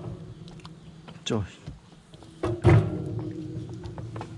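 A knife scrapes and squelches through wax honeycomb.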